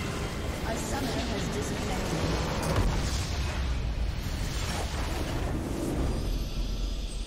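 A base explodes with a loud, rumbling blast.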